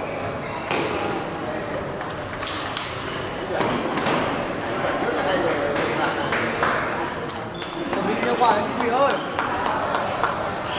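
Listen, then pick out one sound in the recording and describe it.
A table tennis ball clicks back and forth between paddles and the table.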